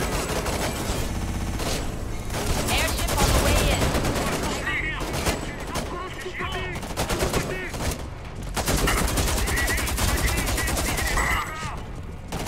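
A machine gun fires rapid bursts.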